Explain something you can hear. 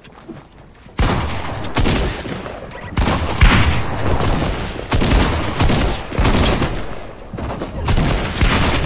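Gunshots crack loudly in quick bursts.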